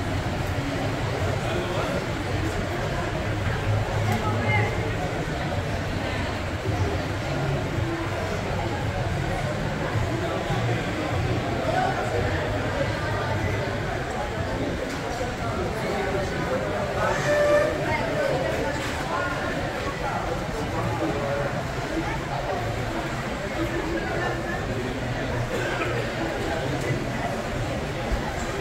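A crowd of shoppers murmurs and chatters in a large echoing hall.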